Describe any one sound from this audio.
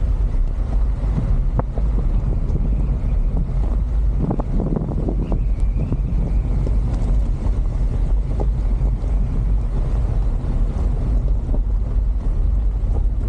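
Tyres crunch and rattle over a gravel road.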